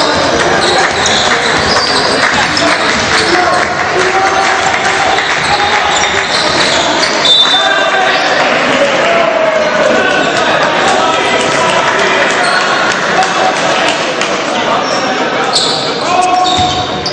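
Basketball shoes squeak on a hardwood court.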